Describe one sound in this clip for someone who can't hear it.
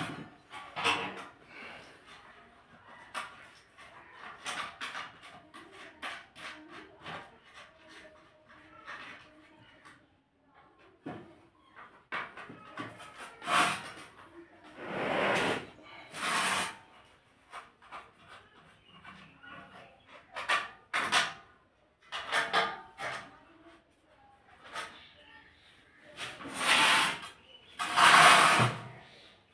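Hands scrape and tap on a plastic grille.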